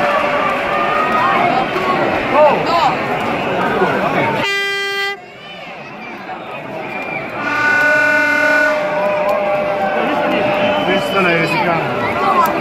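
A large stadium crowd chants and roars outdoors.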